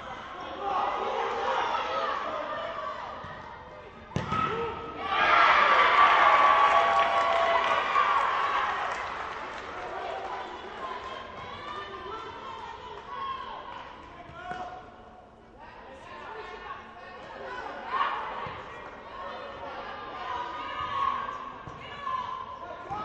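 Voices of players and spectators echo through a large indoor hall.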